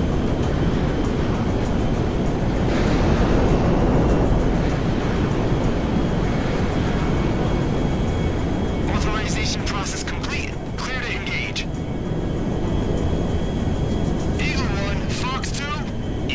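Jet engines roar steadily as a plane flies.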